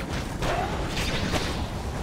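A fiery blast booms.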